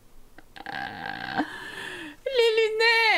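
A young woman laughs close to a microphone.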